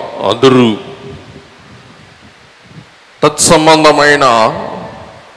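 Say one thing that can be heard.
A middle-aged man speaks with feeling through a headset microphone in a reverberant hall.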